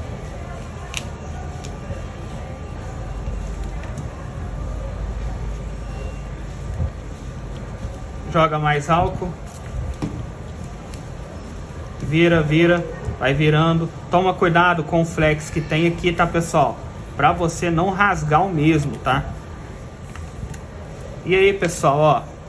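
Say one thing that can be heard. A plastic pry tool scrapes and clicks along the edge of a phone.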